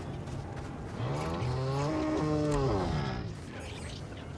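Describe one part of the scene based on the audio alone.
A large creature lets out a low, wavering groan.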